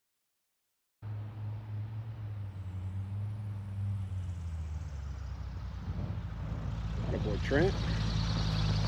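Another small plane's engine hums as the plane approaches and lands.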